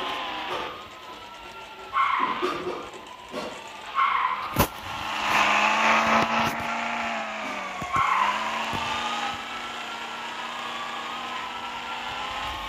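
An off-road buggy's engine hums and revs up and down.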